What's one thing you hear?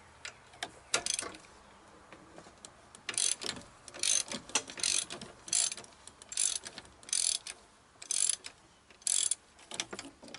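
A ratchet wrench clicks in quick bursts.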